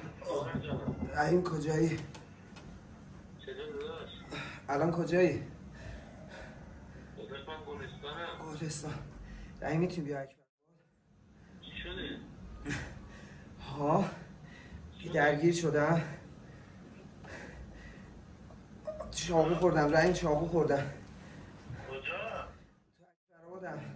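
A young man laughs nearby.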